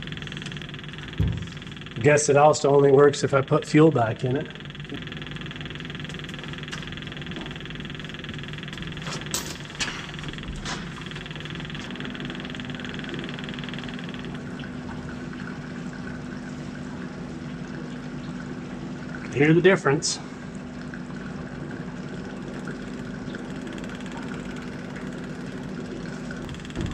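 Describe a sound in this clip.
A machine engine hums steadily nearby.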